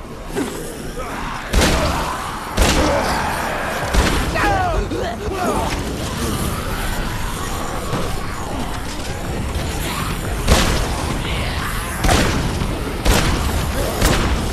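Zombies groan and snarl in a crowd.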